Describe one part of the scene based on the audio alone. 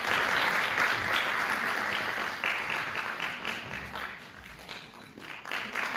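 A choir sings in a large echoing hall.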